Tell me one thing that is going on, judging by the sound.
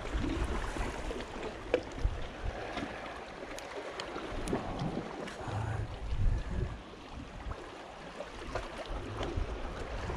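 A fishing line is wound in on a spinning reel.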